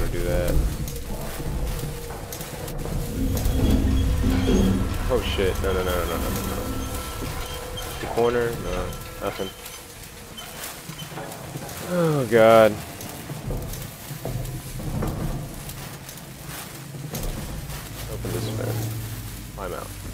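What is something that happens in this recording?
A lit flare hisses and sputters steadily.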